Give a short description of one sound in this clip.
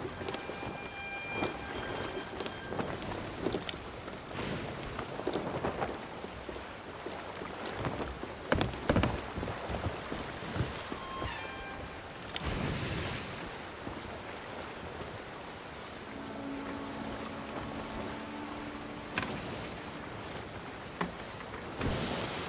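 Waves wash and splash against a wooden ship.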